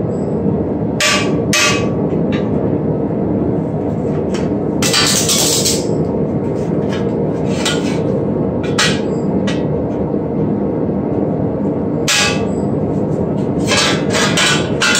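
A hammer strikes a metal sheet with sharp ringing bangs.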